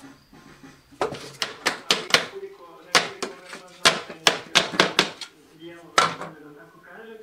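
A tool taps on pebbles on the floor in quick, sharp knocks.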